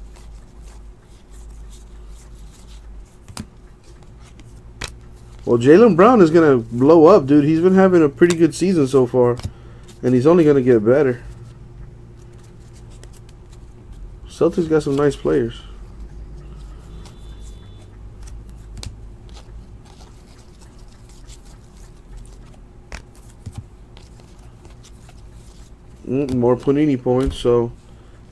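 Trading cards shuffle and flick softly against each other.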